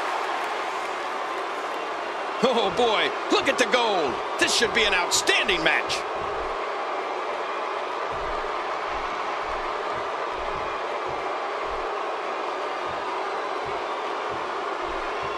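A large crowd roars steadily in a big echoing arena.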